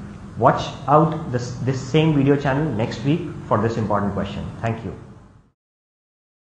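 A man speaks calmly and clearly into a microphone, close by.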